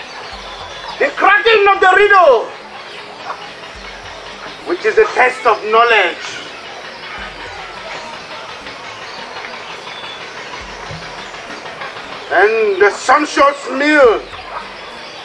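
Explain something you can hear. A group of women sings short phrases together outdoors, with pauses between them.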